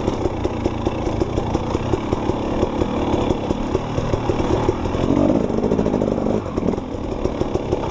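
A dirt bike engine revs and sputters up close.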